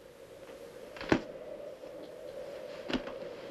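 Paper rustles and crackles close by.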